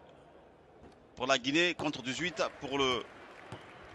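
A basketball swishes through a net.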